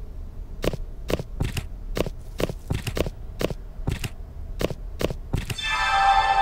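Figurines click into place in quick succession.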